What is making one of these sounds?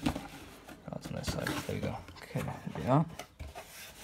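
Cardboard flaps scrape as a box is opened.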